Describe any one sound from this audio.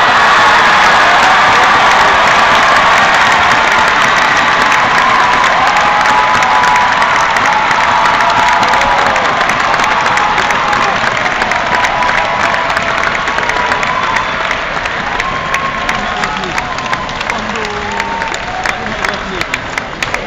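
A large crowd cheers and roars loudly in a big echoing hall, slowly dying down.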